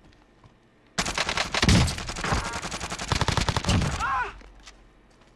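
An automatic rifle fires rapid bursts in a video game.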